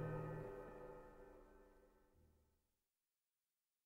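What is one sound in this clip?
Music with a held chord fades away to silence.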